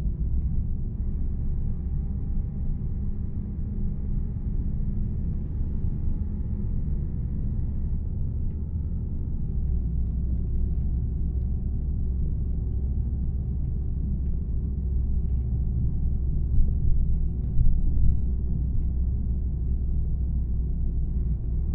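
A bus engine hums low and steady as the bus drives along.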